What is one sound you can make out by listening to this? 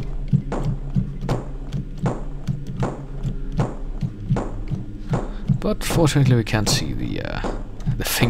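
Music with a steady thumping beat plays throughout.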